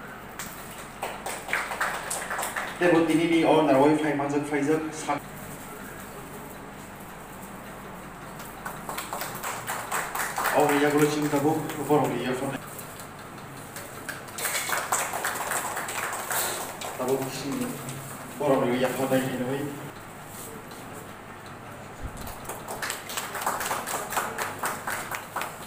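A small group of people claps in bursts of applause.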